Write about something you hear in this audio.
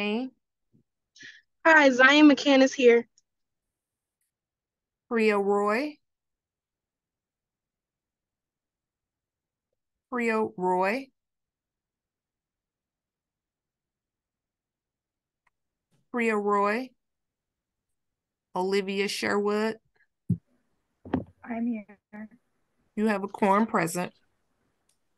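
A young woman speaks calmly over an online call, in short bursts.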